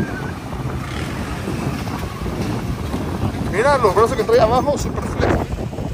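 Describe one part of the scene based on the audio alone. A truck engine rumbles as it drives through shallow water.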